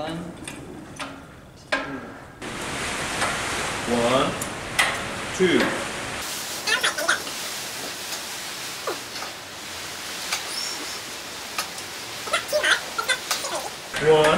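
A hydraulic press handle clanks as it is pumped.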